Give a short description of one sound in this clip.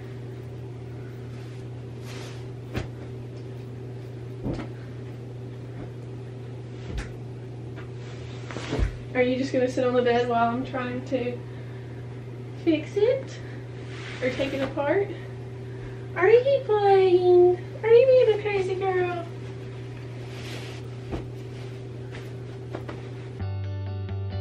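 Bed sheets rustle and flap as they are spread out.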